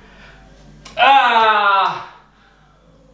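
A man lets out a long, loud groan of effort.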